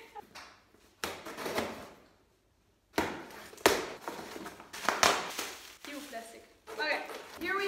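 Paper rustles and crinkles in a young woman's hands.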